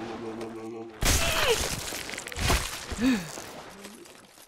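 A monster groans and gurgles.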